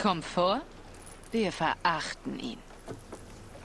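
A woman speaks calmly and firmly, heard through game audio.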